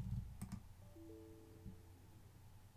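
A short computer alert chime sounds.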